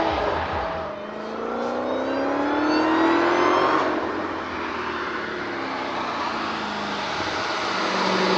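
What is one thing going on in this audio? A single car engine revs up and rises in pitch as the car approaches.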